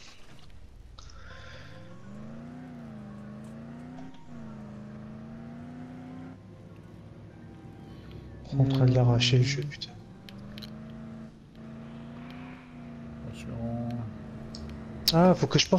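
A car engine hums and revs as it drives.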